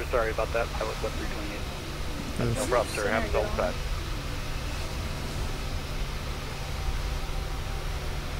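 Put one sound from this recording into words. A jet engine hums steadily at idle.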